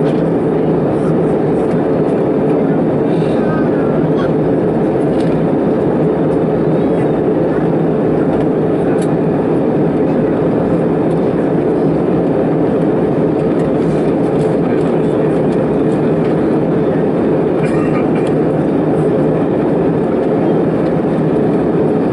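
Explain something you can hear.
A jet engine roars steadily in the cabin of a plane in flight.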